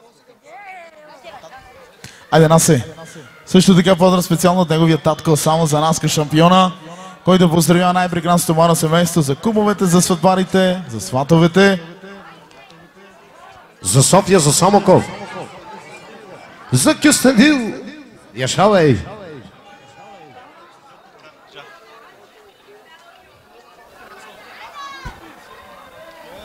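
A crowd of men and women chatter nearby in a large room.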